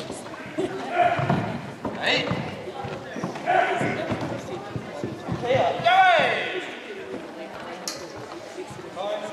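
Bare feet thud and squeak on a wooden floor.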